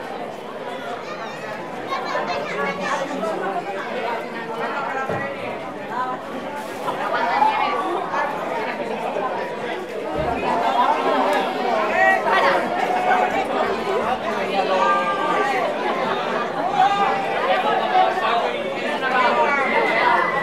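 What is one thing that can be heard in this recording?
A crowd of men and women chatters and calls out loudly outdoors.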